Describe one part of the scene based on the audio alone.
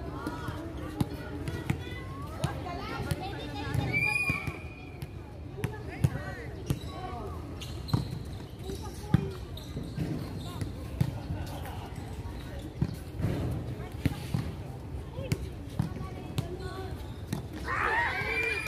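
A volleyball is struck by players' hands and forearms outdoors.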